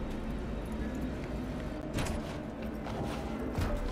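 A car door opens with a clunk.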